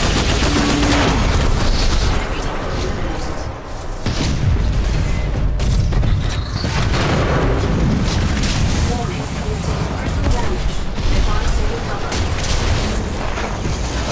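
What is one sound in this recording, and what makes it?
Heavy guns fire in rapid bursts with loud blasts.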